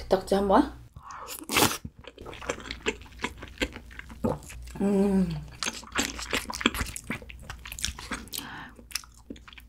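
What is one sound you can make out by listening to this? A young woman chews and slurps food loudly and wetly, close to a microphone.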